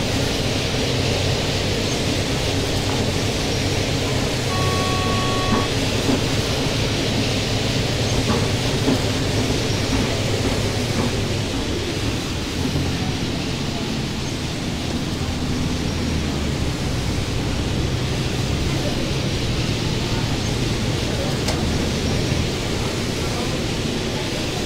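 A bus engine drones steadily while driving.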